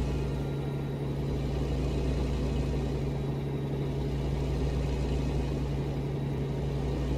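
Tyres roll over the road with a steady rumble.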